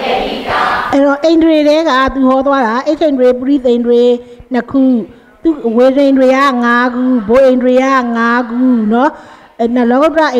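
A woman chants in a sustained, melodic voice through a microphone.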